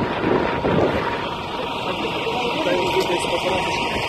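A fire engine's motor idles nearby.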